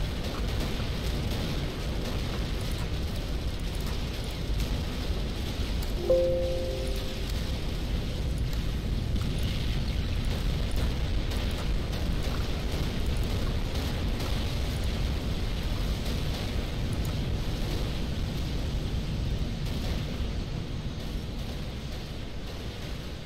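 Explosions and gunfire rumble in a steady, low battle din.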